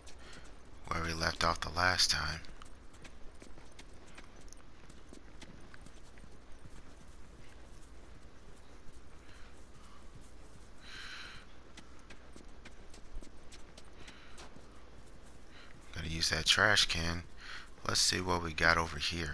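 Footsteps thud down wooden stairs and pad through grass.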